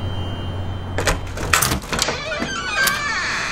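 A door lock clicks and turns.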